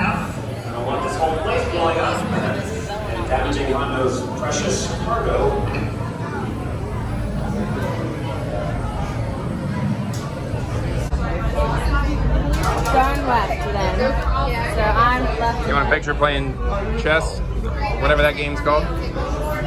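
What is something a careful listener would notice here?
A crowd of people chatter in a busy room.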